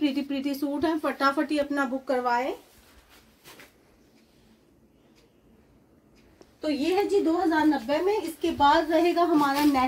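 Cloth rustles as a woman handles fabric.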